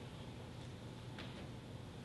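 Small objects clink softly on an altar as a priest handles them.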